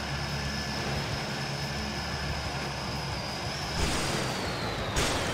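Propeller engines drone steadily.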